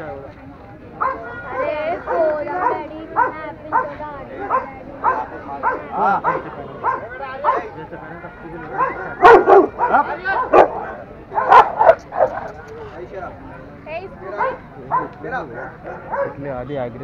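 Dogs bark sharply, with loud bursts in the middle.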